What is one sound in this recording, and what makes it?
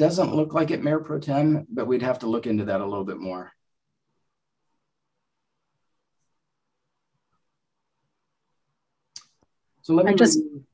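A man speaks calmly over an online call, pausing in between.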